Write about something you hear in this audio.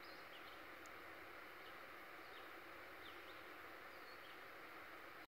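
Leaves rustle softly in a steady breeze outdoors.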